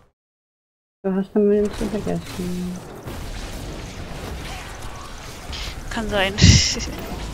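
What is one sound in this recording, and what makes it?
Magic spells blast and crackle in a video game.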